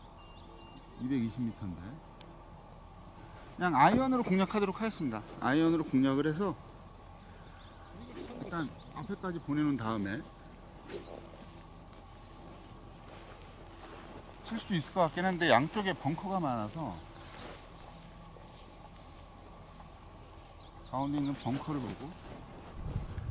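A man speaks calmly close to a microphone, pausing between phrases.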